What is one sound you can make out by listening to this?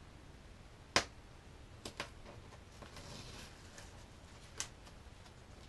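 Small clicks and snaps sound as hands handle a plastic fitting.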